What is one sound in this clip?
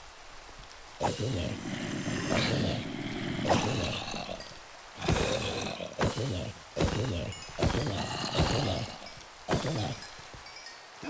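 A sword strikes with quick thumping hits.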